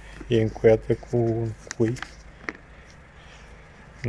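Plastic sheeting crinkles under a hand.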